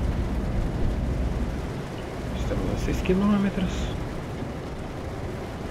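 A truck engine rumbles low and steadily.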